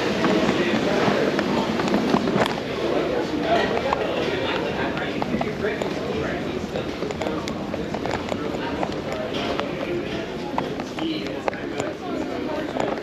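Men and women chat quietly in a large room.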